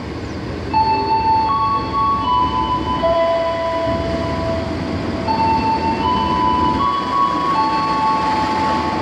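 A diesel locomotive horn blares in long, shifting tones.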